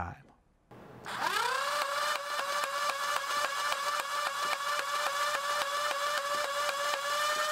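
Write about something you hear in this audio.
A toy blaster's motor spins up to a high, steady whine.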